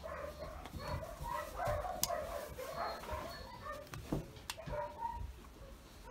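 A puppy whimpers softly.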